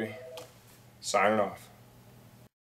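A man says a short line in a deep voice.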